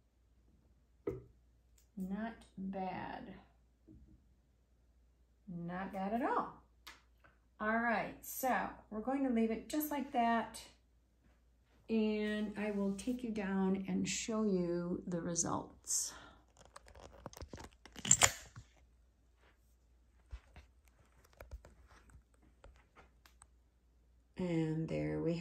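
A woman speaks calmly close by, in short phrases with pauses.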